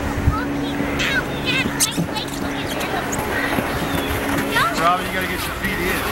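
A young girl calls out with high, excited squeals.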